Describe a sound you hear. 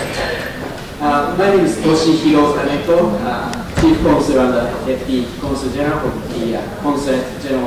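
A man speaks into a microphone in a calm, formal tone.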